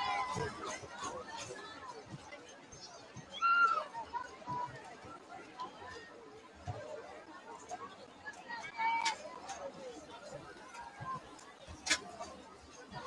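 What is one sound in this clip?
A crowd chatters and cheers in the stands outdoors.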